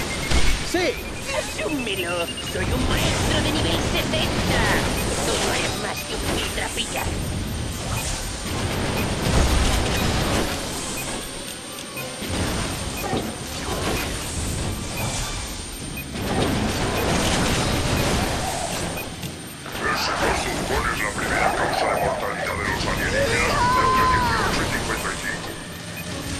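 Guns fire and explosions boom in rapid bursts.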